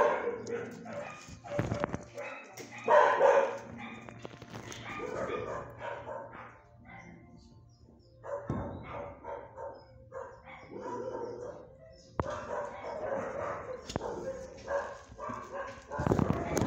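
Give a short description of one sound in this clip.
Dogs bark in an echoing room.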